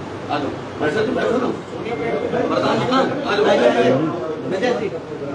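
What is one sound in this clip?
A crowd of men and women talk over one another in a room.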